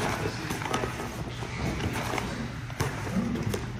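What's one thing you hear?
Bare feet shuffle and thump on a padded mat.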